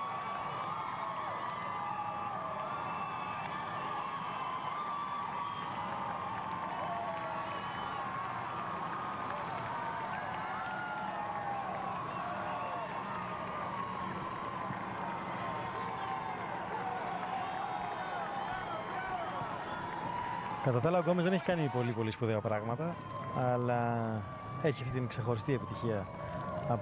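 A crowd cheers and shouts steadily outdoors.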